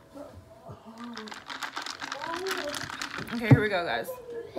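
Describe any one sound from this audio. A young woman shakes a drink in a plastic bottle.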